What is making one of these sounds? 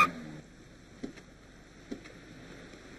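A car door opens and then shuts.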